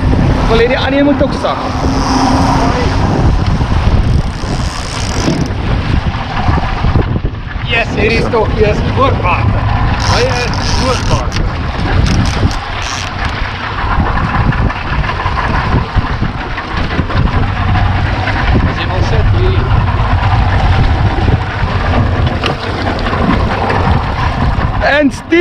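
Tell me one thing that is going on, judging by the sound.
Waves splash and churn against a moving boat.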